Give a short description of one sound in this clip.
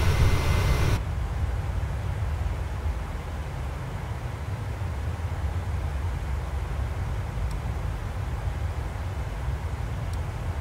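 Jet engines hum in a low, muffled drone inside a cockpit.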